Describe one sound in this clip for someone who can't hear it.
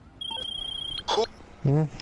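A phone rings with a high electronic tone.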